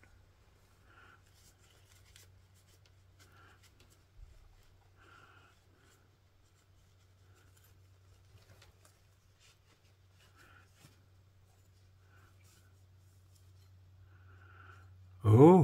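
A cloth softly rubs against a metal knife blade.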